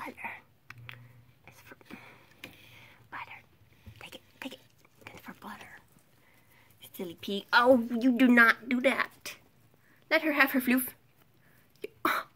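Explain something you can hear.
Hay rustles as guinea pigs move through it.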